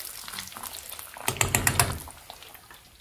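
Oil sizzles and bubbles in a frying pan.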